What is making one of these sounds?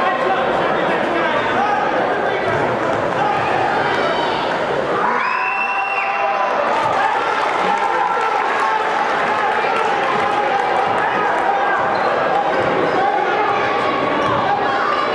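A large crowd in an echoing gym cheers and shouts throughout.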